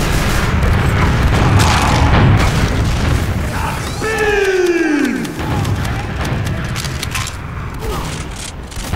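A game's weapon fires in rapid bursts.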